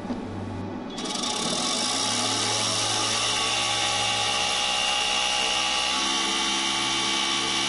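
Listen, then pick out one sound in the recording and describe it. A motor whirs steadily as a machine runs with a rapid rattling.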